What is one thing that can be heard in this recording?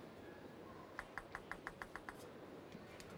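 A table tennis ball bounces repeatedly on a hard surface, the bounces coming faster.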